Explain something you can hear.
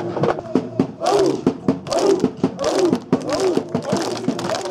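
A group of people clap in a steady rhythm.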